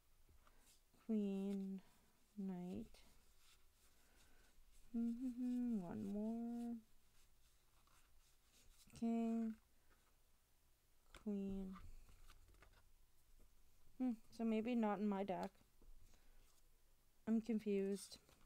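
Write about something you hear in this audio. Playing cards rustle and slide softly against each other.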